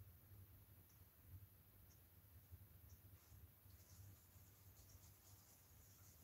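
A soft brush lightly strokes a hard surface.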